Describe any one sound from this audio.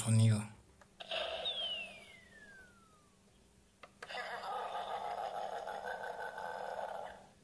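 A toy ship plays electronic sound effects.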